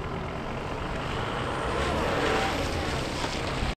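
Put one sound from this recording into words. A car engine hums as the car pulls away slowly.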